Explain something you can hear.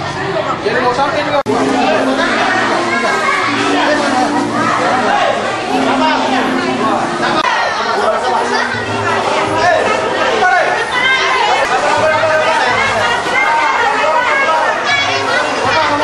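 A crowd of men and women talk and call out all at once, close by.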